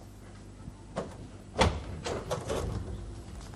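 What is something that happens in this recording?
A door opens with a thud and a creak.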